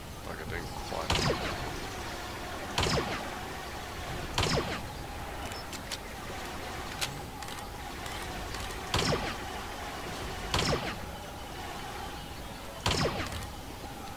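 A rifle fires sharp single shots now and then.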